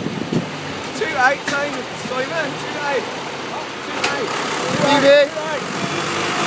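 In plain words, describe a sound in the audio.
A man speaks from close by over the engine noise.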